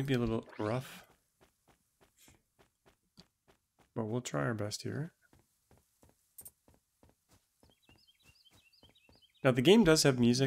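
Footsteps tap steadily on the ground.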